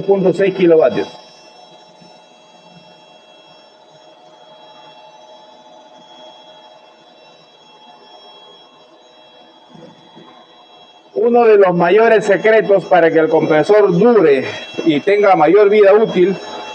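An air compressor hums steadily nearby.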